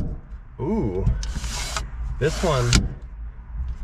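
A sliding window scrapes along its track.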